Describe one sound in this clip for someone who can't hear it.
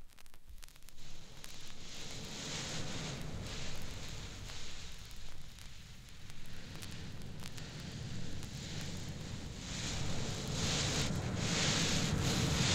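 Music plays from a record on a turntable.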